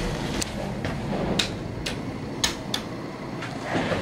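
A finger presses an elevator button with a soft click.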